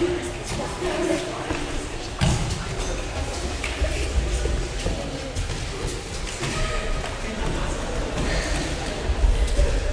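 Bodies thud onto a mat.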